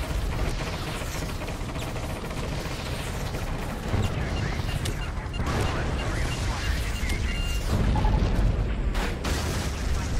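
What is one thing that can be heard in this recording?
Helicopter rotors thump overhead.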